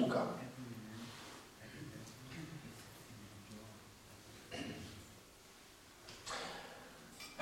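A man reads aloud calmly into a microphone in an echoing hall.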